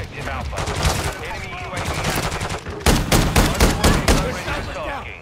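Rapid gunfire bursts out close by.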